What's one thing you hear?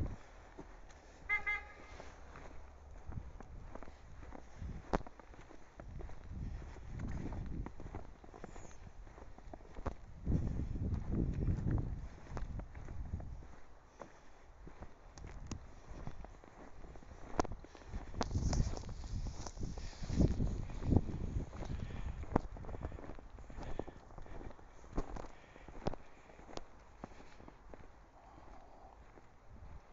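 Footsteps crunch through fresh snow.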